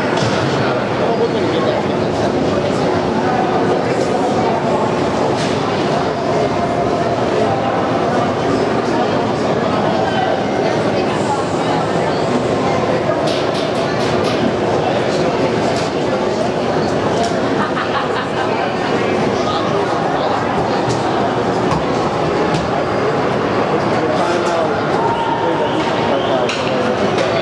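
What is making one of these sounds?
A crowd of young players chatters and shouts in a large echoing rink.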